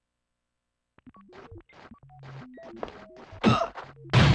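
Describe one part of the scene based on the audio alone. Game sound effects clatter and thud in quick bursts.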